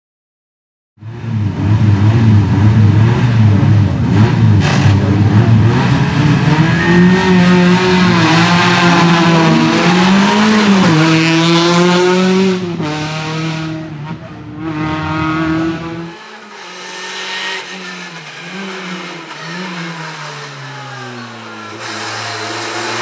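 A race car engine revs hard and roars loudly, rising and falling in pitch.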